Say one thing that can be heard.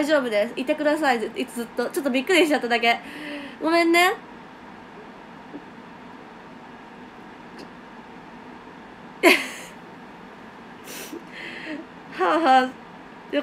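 A young woman talks cheerfully and close to a microphone.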